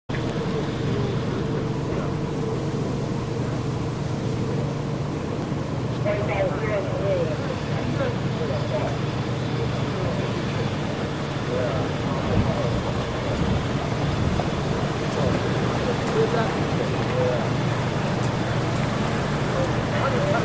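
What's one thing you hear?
Cars drive slowly past on a road, their engines humming and tyres rolling on the tarmac.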